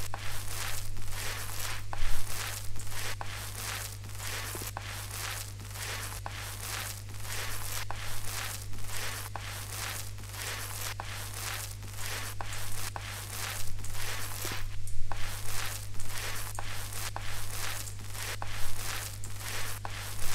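A paint roller swishes back and forth over a ceiling in quick, even strokes.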